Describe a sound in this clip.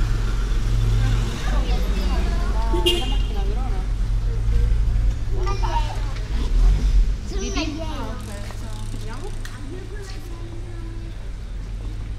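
Men and women talk in passing nearby, outdoors.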